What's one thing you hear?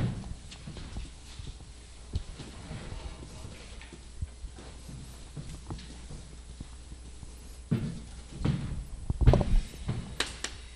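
A man speaks into a microphone in a steady lecturing voice.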